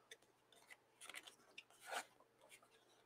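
Paper rustles softly under hands.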